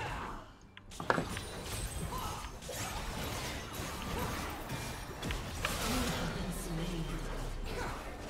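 Game spell effects crackle and blast in a fight.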